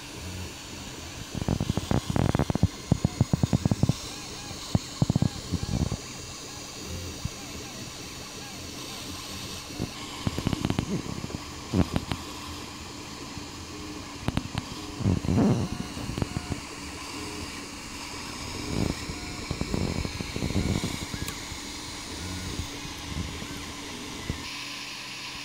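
A printer's motors whir and whine as the print head moves.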